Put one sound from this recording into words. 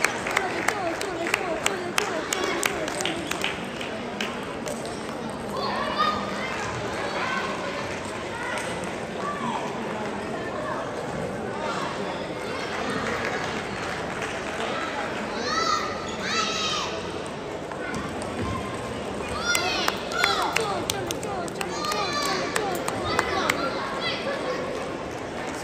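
Table tennis balls click against paddles and tables throughout a large echoing hall.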